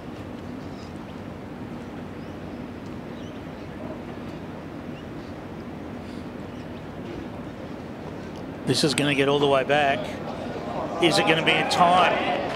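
A crowd murmurs softly in the distance outdoors.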